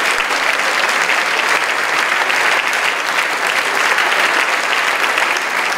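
An audience claps loudly in a large hall.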